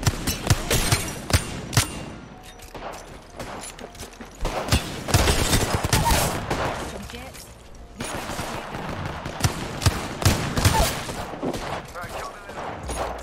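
Gunshots fire in rapid bursts, sharp and loud.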